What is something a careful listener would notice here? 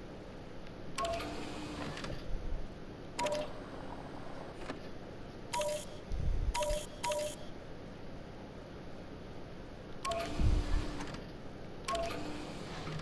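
Short electronic beeps sound.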